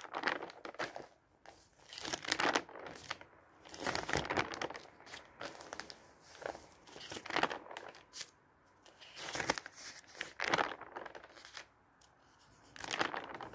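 Glossy magazine pages rustle and flip close by.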